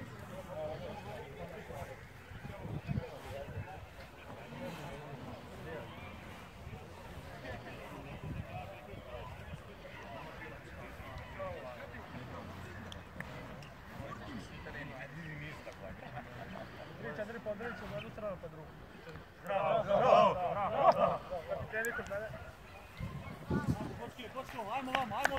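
Young men chat and call out outdoors in the open.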